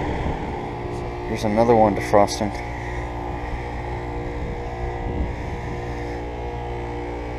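An air conditioner's outdoor fan hums and whirs steadily.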